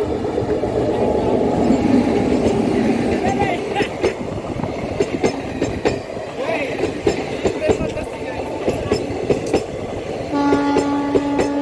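Train wheels clatter rhythmically over rail joints as the carriages pass close by.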